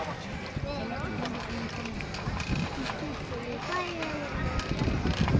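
Water sloshes and splashes as a frame is turned over in a pool.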